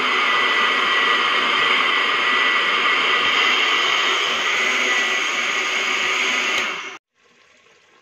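A blender whirs loudly and steadily, then stops abruptly.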